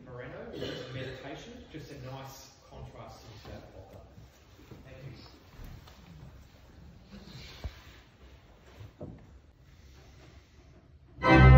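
A man speaks calmly to an audience in an echoing hall.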